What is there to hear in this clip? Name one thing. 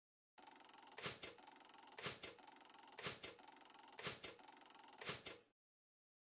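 Mystery cards flip over one after another with short popping sounds.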